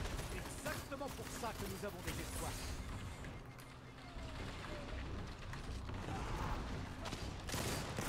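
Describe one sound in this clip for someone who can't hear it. Gunfire from a video game blasts in quick bursts.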